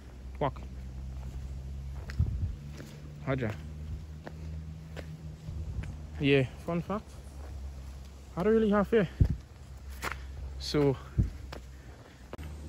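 Footsteps scuff along a wet path.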